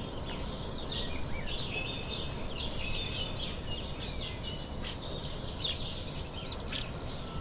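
A squirrel nibbles and gnaws on a nut close by.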